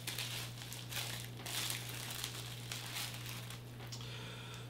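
Plastic packaging rustles and crinkles as it is opened.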